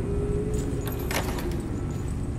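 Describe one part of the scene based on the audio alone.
A key turns in a lock with a sharp metallic click.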